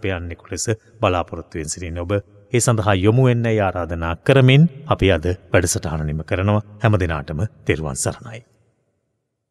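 A man speaks with animation into a microphone, close by.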